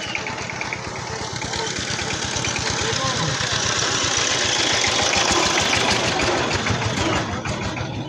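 A tractor engine chugs close by.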